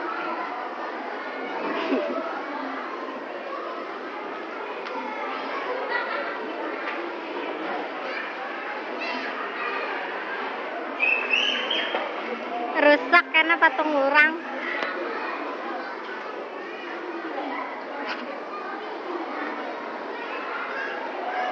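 A young man talks softly and close by.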